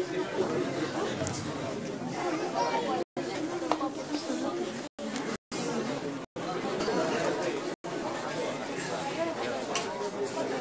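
A crowd of men and women chatters and murmurs in a large echoing hall.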